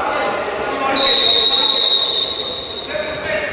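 A referee's whistle blows a long blast in an echoing sports hall.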